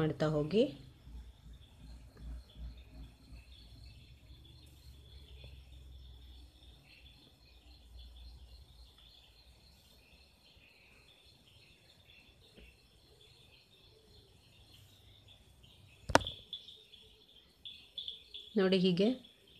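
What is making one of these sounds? Hands softly rustle thread against cloth close by.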